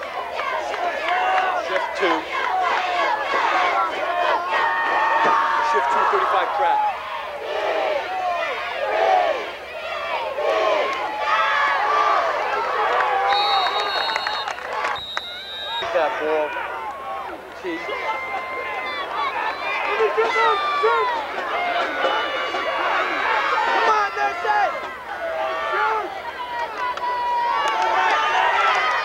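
A crowd of spectators chatters and calls out close by.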